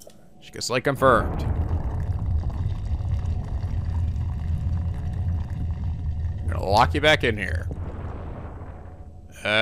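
A heavy stone platform rumbles low as it descends.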